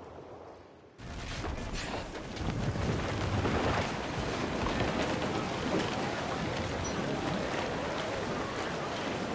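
Waves wash and splash against a ship's hull.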